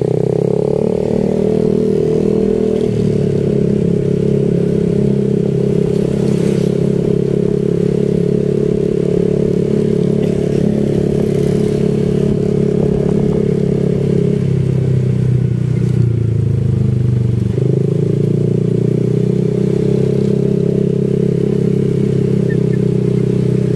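A motor scooter's engine hums steadily, its pitch shifting as it speeds up and slows down.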